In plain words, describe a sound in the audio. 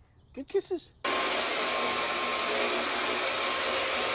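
A vacuum cleaner runs with a steady roar.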